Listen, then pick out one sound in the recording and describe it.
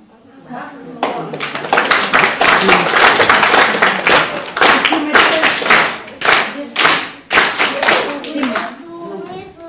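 Young children recite loudly together in an echoing hall.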